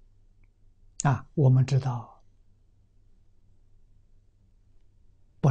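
An elderly man speaks calmly and closely into a microphone.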